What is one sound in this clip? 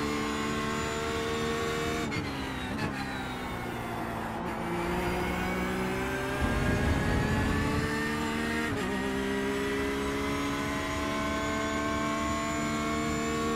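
A racing car engine roars, dropping in pitch as the car brakes and rising again as it speeds up.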